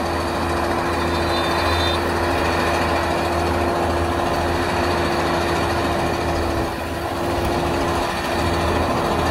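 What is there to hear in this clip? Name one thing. Heavy truck engines rumble and drone steadily nearby.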